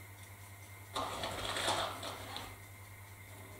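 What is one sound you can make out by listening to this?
A plastic bag rustles and crinkles close by.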